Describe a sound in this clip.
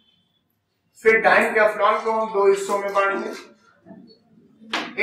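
A man lectures calmly into a microphone.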